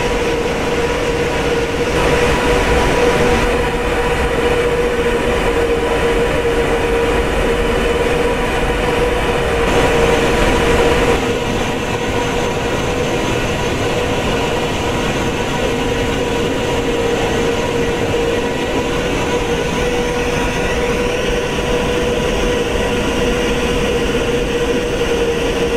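Jet engines of an airliner hum and whine steadily.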